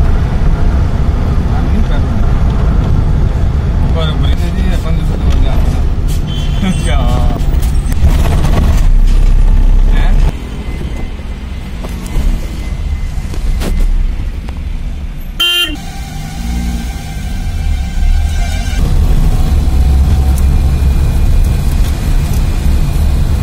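A truck engine rumbles steadily while driving along a road.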